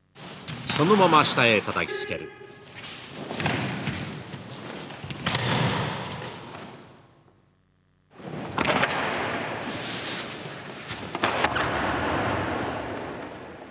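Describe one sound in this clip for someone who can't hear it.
A body thuds onto a padded mat.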